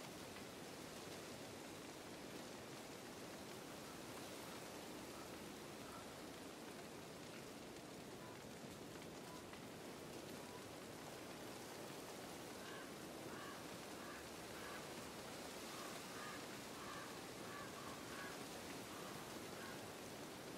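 Wind blows steadily through trees outdoors.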